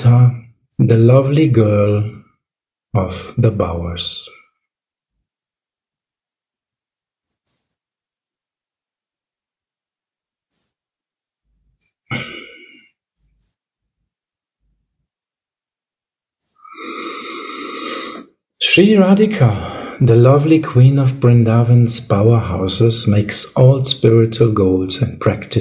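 A man talks calmly over an online call.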